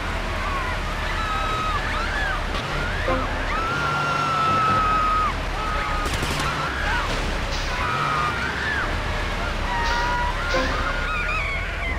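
A water cannon sprays a hissing jet of water.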